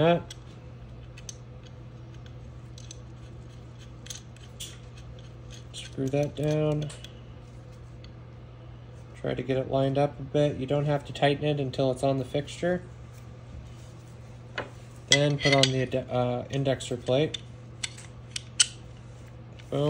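Metal parts click and tap against each other as they are handled.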